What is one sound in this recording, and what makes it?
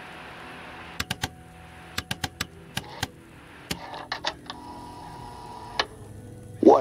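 A radio tuning knob clicks several times as it is turned.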